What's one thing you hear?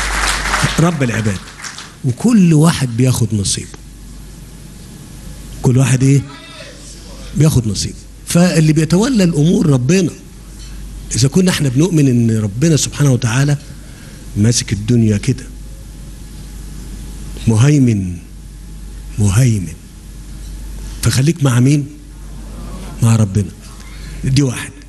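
A man speaks emphatically into a microphone, with pauses.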